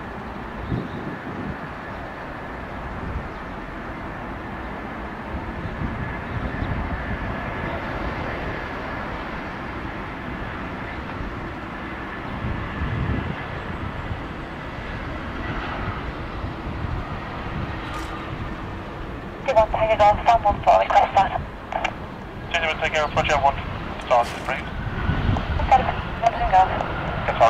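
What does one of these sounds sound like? A jet airliner's engines roar steadily as it descends to land.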